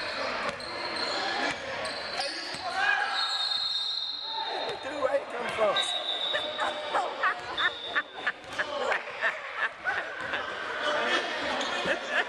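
Spectators talk and call out in the stands.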